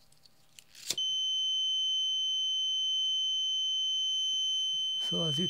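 An electronic buzzer sounds a steady, high-pitched tone.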